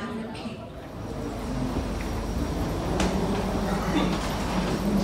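Footsteps walk along a hollow floor.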